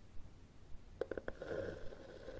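Fingernails tap on a hard book cover.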